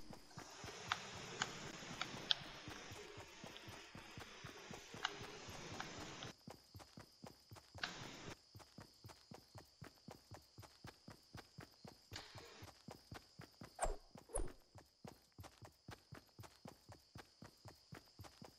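Footsteps patter quickly over grass as a game character runs.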